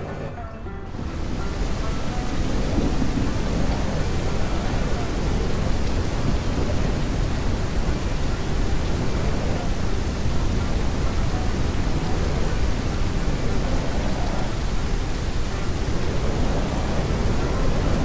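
A car engine roars steadily as a truck drives.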